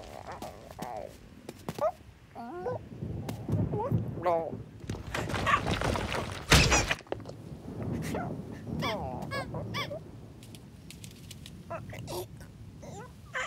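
A cartoon bird squawks and clucks in short bursts.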